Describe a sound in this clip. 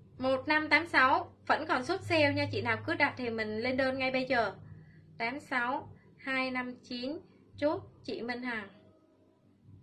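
A young woman speaks with animation, close to the microphone.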